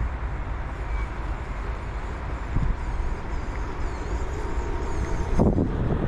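A model boat's motor hums as the boat passes close by.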